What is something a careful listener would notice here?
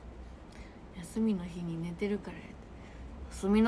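A young woman speaks close by, softly and with animation.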